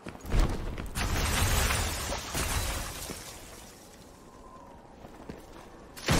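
Heavy footsteps thud on hard ground.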